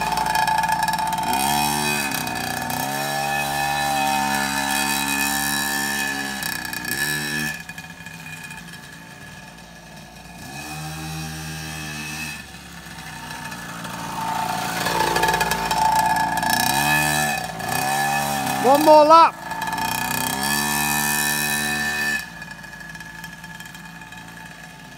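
A small motorbike engine buzzes and revs up and down, passing close by and moving away.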